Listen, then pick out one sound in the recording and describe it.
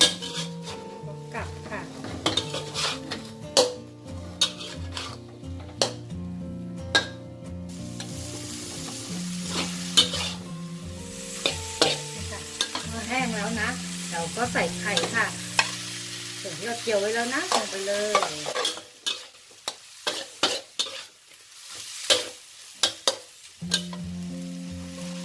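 A metal spatula scrapes and clanks against a wok.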